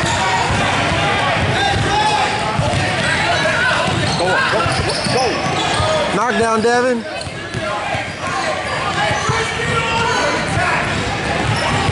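A crowd of young players and spectators chatter and shout in an echoing hall.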